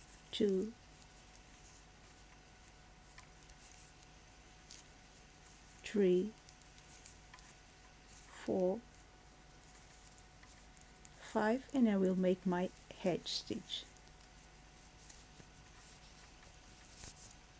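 Knitting needles click softly.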